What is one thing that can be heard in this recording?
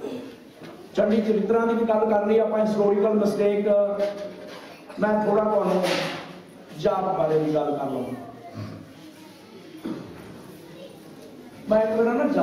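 An elderly man sings through a microphone and loudspeakers in an echoing room.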